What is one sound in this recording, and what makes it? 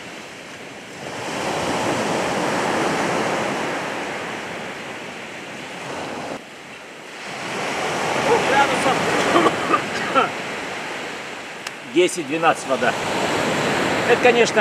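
Waves break and wash onto the shore.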